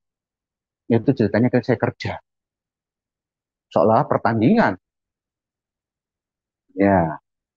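A man speaks through an online call, presenting calmly in short phrases.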